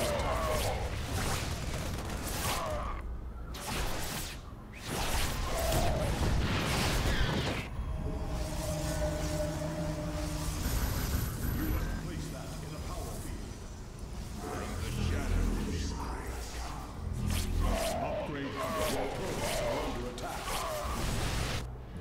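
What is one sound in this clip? Laser fire and explosions crackle in short bursts.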